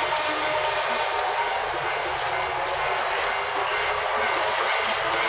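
A train rolls steadily along the rails with a constant rumble.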